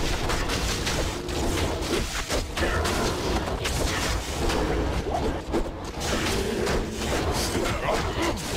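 Weapons clash and strike monsters in rapid blows.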